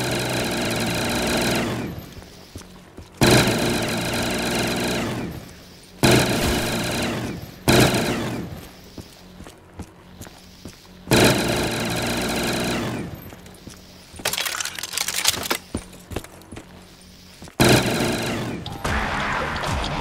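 A heavy machine gun fires in long loud bursts.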